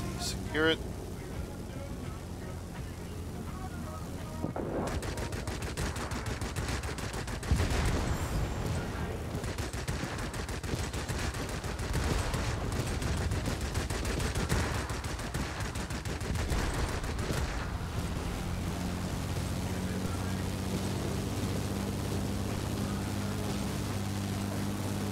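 A plane's engine drones steadily.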